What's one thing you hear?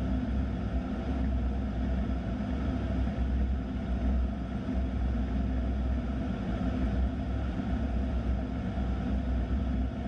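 The turbofan engines of an A-10 attack jet drone steadily with a deep roar inside the cockpit in flight.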